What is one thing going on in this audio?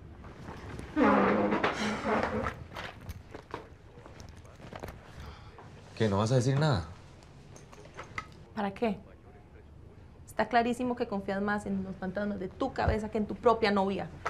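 A young woman speaks sharply and with emotion.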